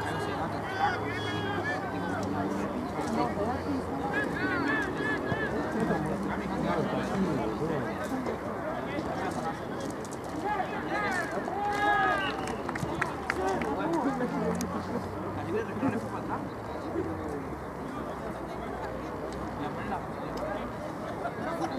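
Players shout to one another across a field.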